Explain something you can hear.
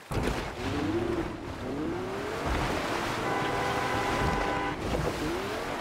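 Water splashes as a vehicle drives through it.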